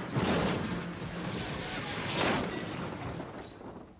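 Tyres skid through dirt and gravel.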